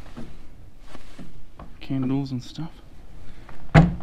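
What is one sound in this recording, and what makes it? A small wooden cupboard door opens with a knock.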